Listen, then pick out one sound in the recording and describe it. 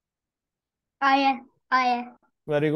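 A young boy speaks loudly with animation through an online call.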